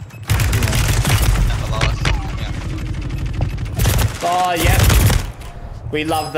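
Gunfire rattles rapidly and loudly.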